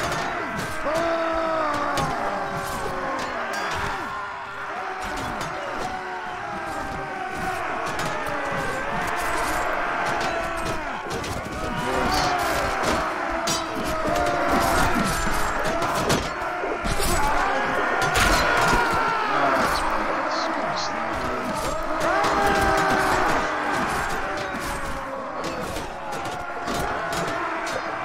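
A crowd of men shout and yell throughout a noisy battle.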